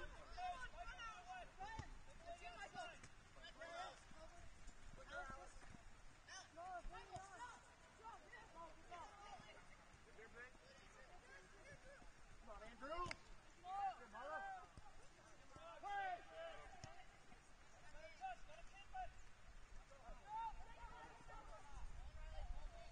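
Young players shout and call out to each other across an open field outdoors.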